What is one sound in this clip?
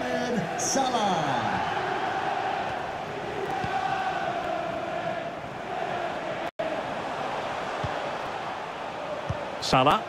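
A large stadium crowd cheers and chants steadily.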